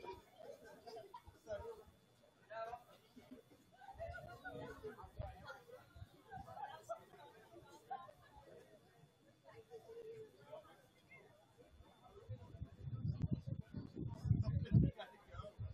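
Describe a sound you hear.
Young men talk quietly in a distant group outdoors.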